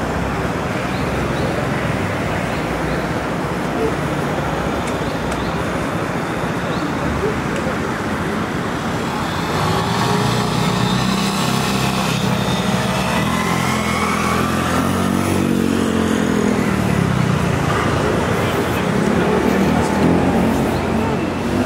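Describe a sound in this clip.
Steady city traffic hums outdoors.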